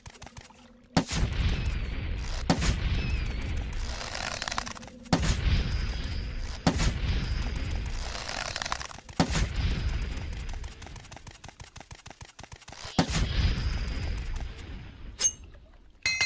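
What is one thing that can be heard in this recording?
A weapon swishes through the air again and again.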